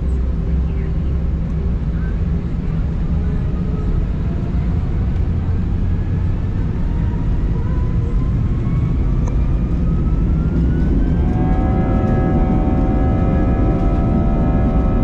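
A jet engine roars steadily and its whine rises in pitch as it spools up.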